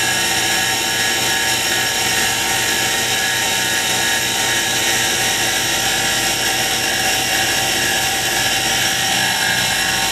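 A cloth rubs against spinning wood.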